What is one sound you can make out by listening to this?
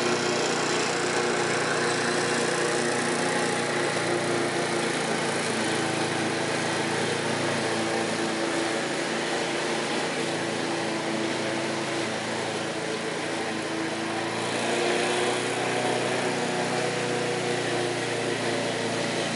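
A lawn mower engine drones steadily outdoors, moving slowly farther away.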